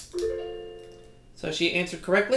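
A video game plays a short electronic jingle through a television speaker.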